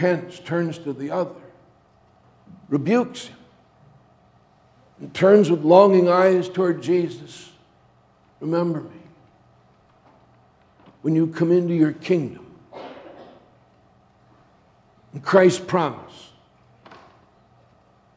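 A middle-aged man preaches with animation through a microphone in an echoing hall, pausing between phrases.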